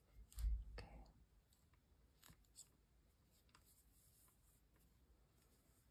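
Fingers rustle faintly against knitted fabric.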